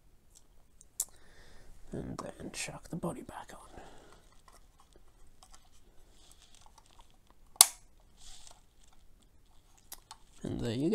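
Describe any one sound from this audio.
A small plastic model clicks and taps as it is handled.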